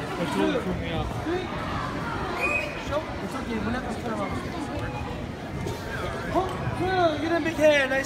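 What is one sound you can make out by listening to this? Children shout and cheer nearby.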